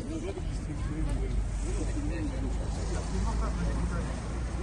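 A car drives past slowly.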